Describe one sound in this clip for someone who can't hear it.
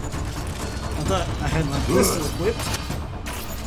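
A young man talks with animation into a nearby microphone.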